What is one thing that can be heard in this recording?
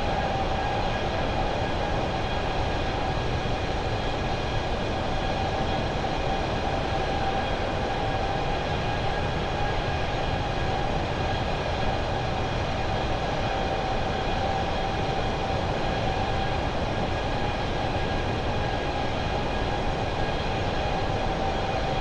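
Jet engines roar and whine steadily.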